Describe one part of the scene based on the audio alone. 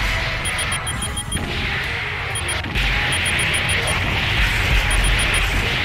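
Missiles whoosh through the air in a video game.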